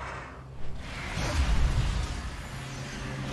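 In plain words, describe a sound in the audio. A magical whoosh rises and rushes loudly.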